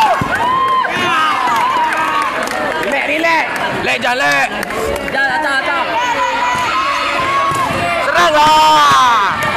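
A crowd of young spectators shouts and cheers loudly in an echoing hall.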